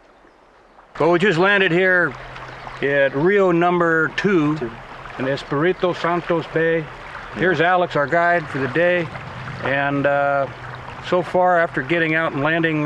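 A middle-aged man speaks calmly and close by outdoors.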